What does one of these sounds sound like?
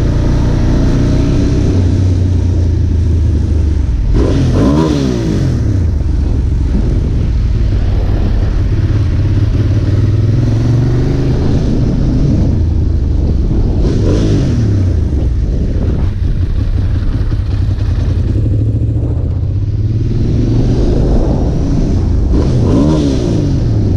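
A motorcycle engine hums close by and revs up and down as it changes gear.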